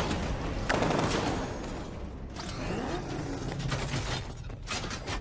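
A vehicle engine roars and revs loudly.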